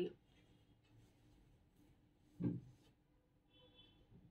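Silk fabric rustles as it is unfolded.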